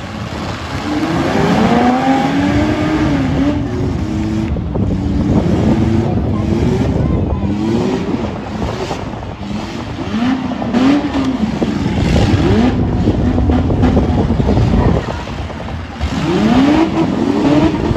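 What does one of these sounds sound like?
Car engines roar and rev loudly, rising and falling in pitch.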